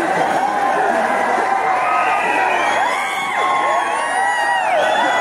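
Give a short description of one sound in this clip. A large crowd shouts and cheers loudly outdoors.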